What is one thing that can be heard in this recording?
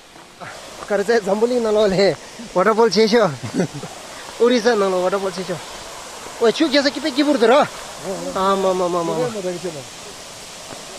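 A young man speaks with animation close to the microphone.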